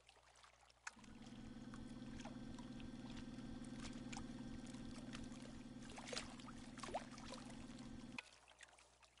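A small boat motor hums steadily, then stops.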